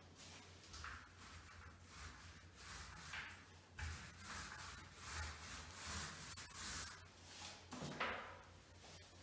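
A paint roller swishes softly against a wall.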